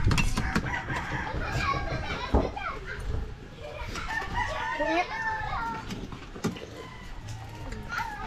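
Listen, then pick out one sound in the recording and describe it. Spoons and forks clink against plates.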